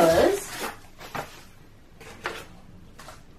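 Hands handle a wooden box with soft knocks.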